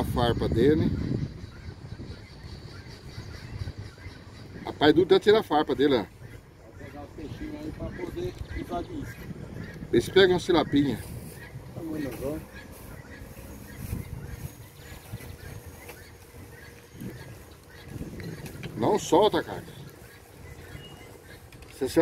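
An older man talks calmly close by, outdoors.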